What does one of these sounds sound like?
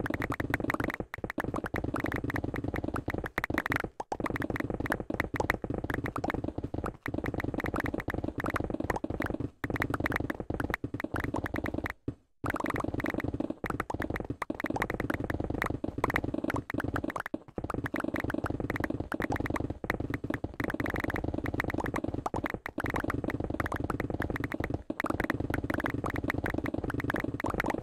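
Stone blocks crumble and break in a rapid, crunching stream.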